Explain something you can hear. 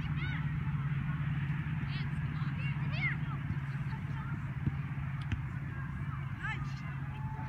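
Young players shout and call out outdoors across an open field.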